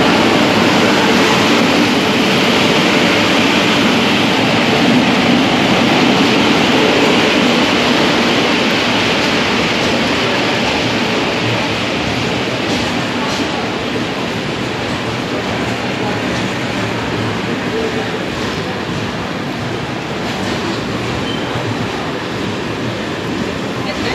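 Passenger train coaches rumble and clatter past on the rails, slowly fading.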